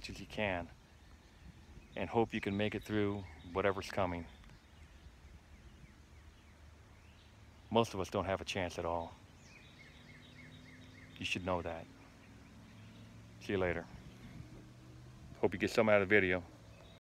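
A middle-aged man speaks calmly and close by, in short bursts with pauses.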